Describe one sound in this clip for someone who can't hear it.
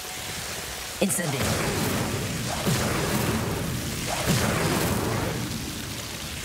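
Sparks crackle and fizz.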